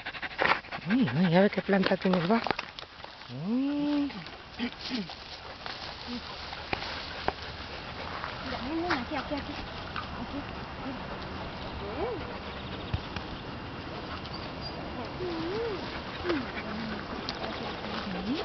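A dog whines in high, rising and falling cries.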